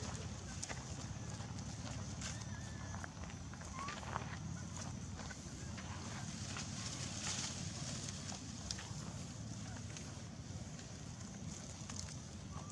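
Dry leaves rustle as a small monkey scampers over grass.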